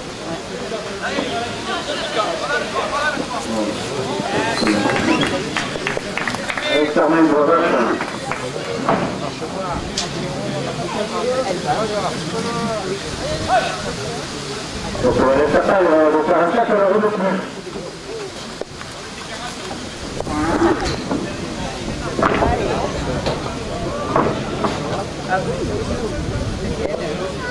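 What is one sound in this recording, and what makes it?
A crowd of spectators talks and calls out outdoors.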